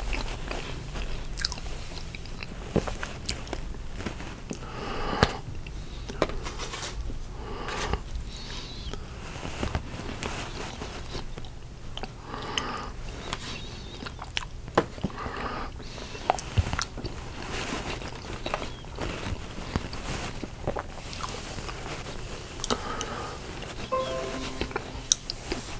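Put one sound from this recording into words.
A middle-aged man talks calmly and close to a clip-on microphone.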